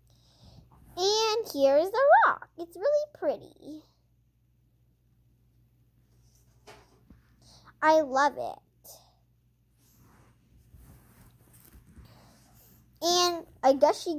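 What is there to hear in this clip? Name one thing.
A young girl speaks close by in a high, lively voice.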